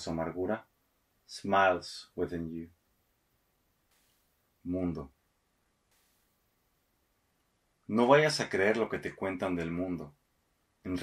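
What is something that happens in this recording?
A man reads aloud slowly and expressively, close to a microphone, with pauses between phrases.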